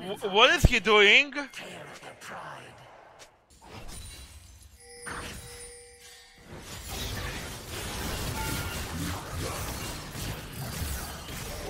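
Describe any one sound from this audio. Electronic fighting sound effects zap and clash.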